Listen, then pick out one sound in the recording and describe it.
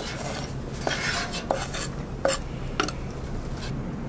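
A knife scrapes chopped vegetables across a wooden board.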